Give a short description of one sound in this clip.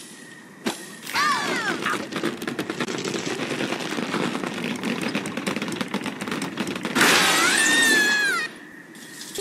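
A slingshot stretches with a tense creaking sound.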